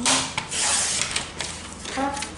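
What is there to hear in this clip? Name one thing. A paper trimmer blade slides along, cutting through card.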